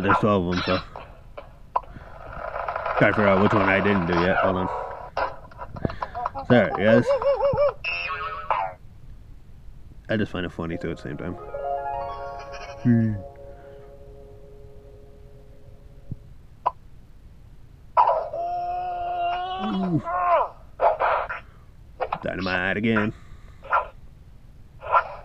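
Cartoon sound effects and short tunes play from a computer game.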